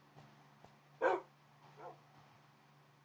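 A dog whines softly.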